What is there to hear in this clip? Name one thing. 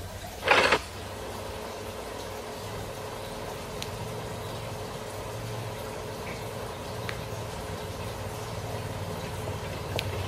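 Eerie low game music hums quietly from a small tablet speaker.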